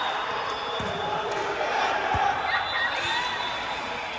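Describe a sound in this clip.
A volleyball is struck with a hard slap.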